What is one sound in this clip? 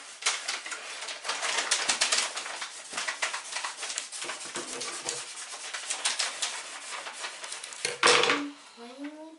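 Loud rustling and crinkling of fabric are close by.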